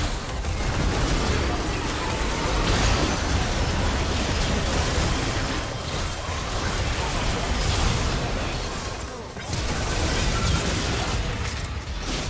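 Magic spells whoosh and crackle during a busy battle.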